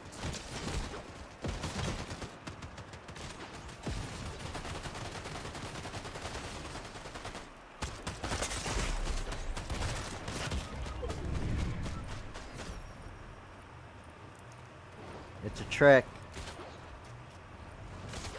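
A shotgun fires with sharp blasts.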